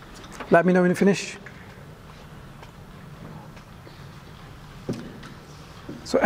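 A man speaks calmly and clearly into a clip-on microphone, pausing between words.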